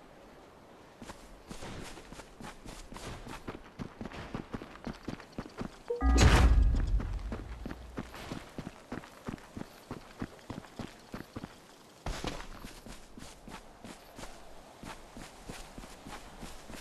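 Footsteps patter quickly over rocky ground.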